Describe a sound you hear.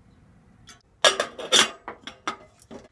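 A metal lid clinks onto a kettle.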